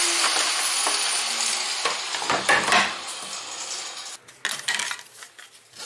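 Plastic sheets clatter on a bench.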